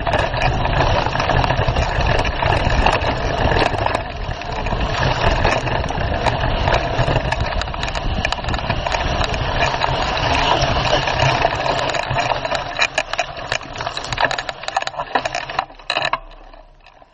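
Tyres rattle and crunch over the rough dirt.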